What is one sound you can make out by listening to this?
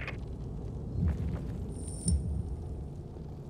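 Heavy footsteps thud dully on soft ground.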